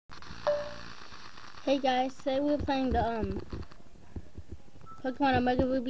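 A handheld game console plays bright, tinny music through its small speaker.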